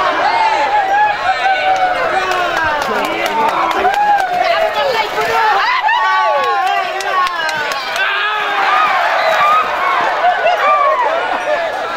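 A large outdoor crowd of men and women shouts and cheers.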